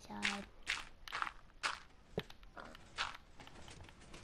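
Stone blocks break with a crumbling crunch.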